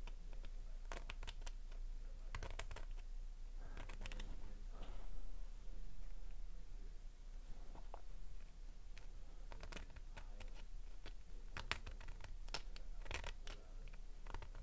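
Small metal parts click and snap as fingers press them together.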